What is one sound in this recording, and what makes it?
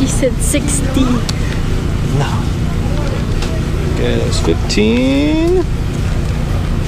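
A crowd murmurs and chatters outdoors at a busy market.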